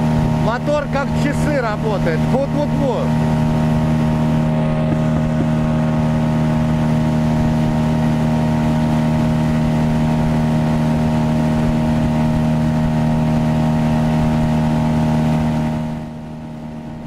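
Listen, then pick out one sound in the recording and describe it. A boat's outboard motor drones steadily up close.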